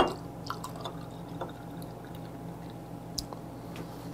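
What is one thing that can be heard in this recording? Beer glugs as it is poured into a glass.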